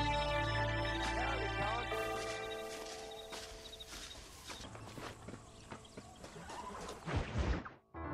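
A man's footsteps crunch on dry ground.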